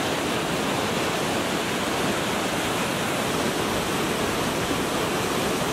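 River rapids rush and roar loudly over rocks close by.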